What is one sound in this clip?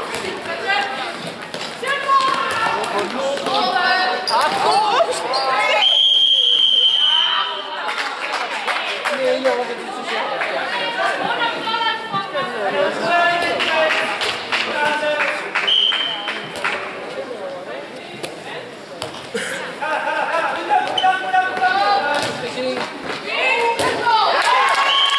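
Sports shoes squeak on a hard floor.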